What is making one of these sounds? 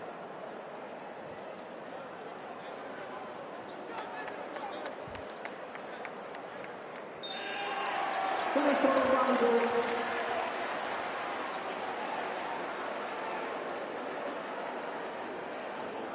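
A crowd cheers loudly in a large echoing arena.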